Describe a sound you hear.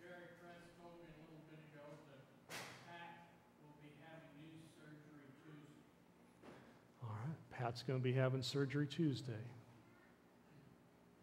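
A middle-aged man speaks calmly into a microphone in an echoing room.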